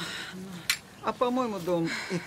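An elderly woman speaks loudly and with animation nearby.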